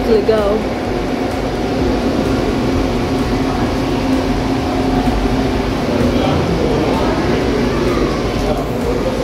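Water bubbles and fizzes steadily.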